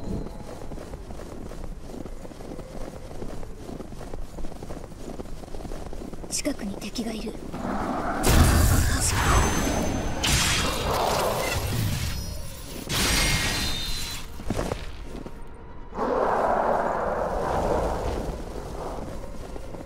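Footsteps run over crunching snow.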